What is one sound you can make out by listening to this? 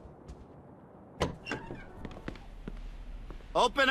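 A wooden door opens with a knock.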